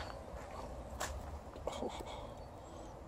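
A dog yelps and howls nearby.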